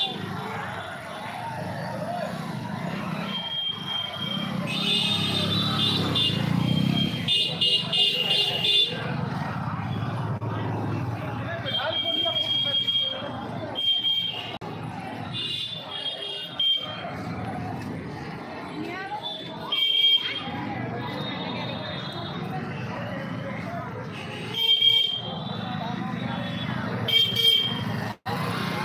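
Motorbike engines hum as they pass close by.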